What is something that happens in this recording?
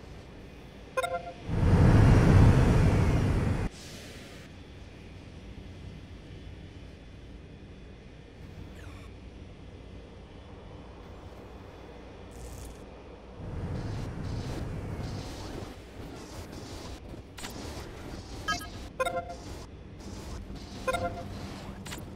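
Short electronic chimes ring out now and then.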